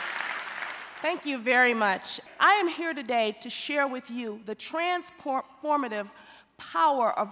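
A woman speaks calmly into a headset microphone.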